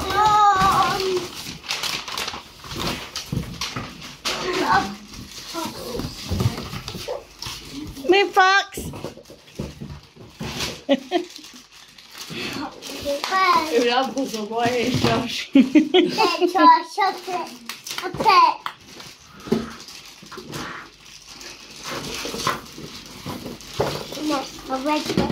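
Young children talk and squeal excitedly close by.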